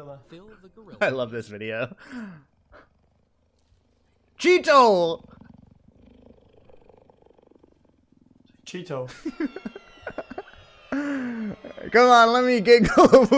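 A man laughs heartily close to a microphone.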